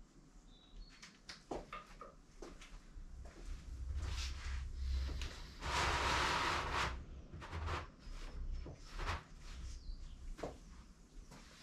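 Metal knocks and clunks sharply.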